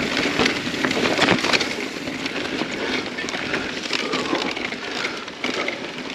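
Bike tyres roll and bump over a muddy dirt trail.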